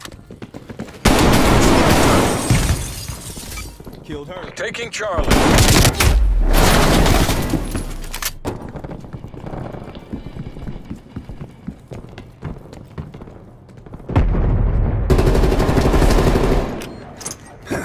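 Guns fire in loud rapid bursts.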